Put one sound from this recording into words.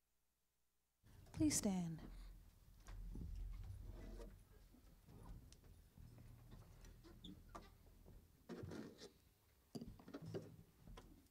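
An acoustic guitar strums.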